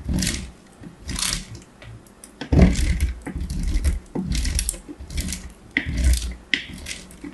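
Fingertips tap and scratch on a plastic grid with crisp crackling sounds.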